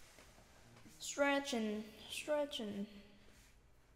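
A young woman speaks in short, lively bursts close to a microphone.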